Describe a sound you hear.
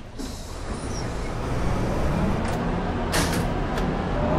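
Bus doors hiss shut.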